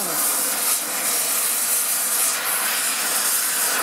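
A gas torch flame roars with a steady hiss.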